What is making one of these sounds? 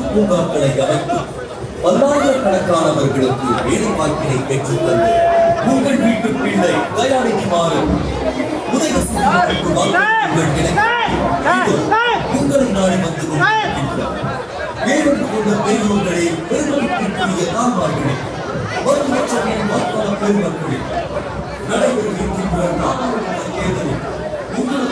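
A large crowd of people talks and shouts loudly outdoors.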